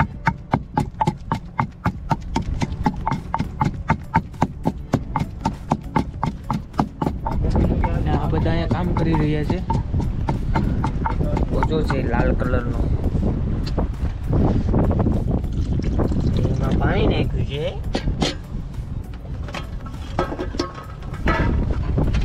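A wooden pestle pounds in a stone mortar with steady dull thuds.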